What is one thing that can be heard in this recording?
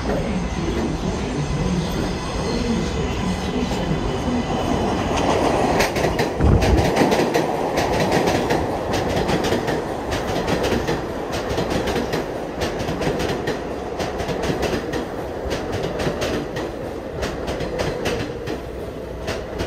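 A subway train rumbles into an elevated station and slows to a stop.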